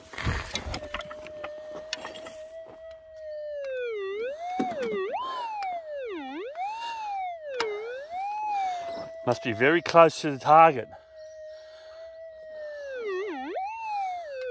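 A metal detector hums with a warbling tone that rises and falls.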